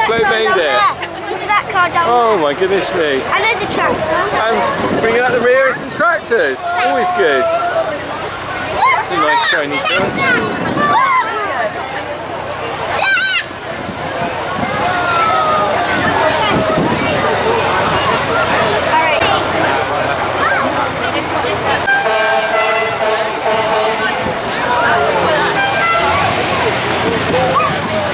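A crowd of adults and children chatters and calls out outdoors.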